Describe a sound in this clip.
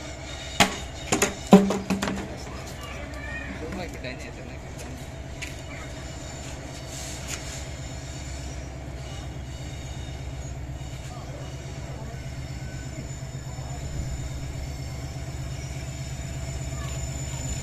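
A distant train rumbles steadily along the tracks, growing slightly louder.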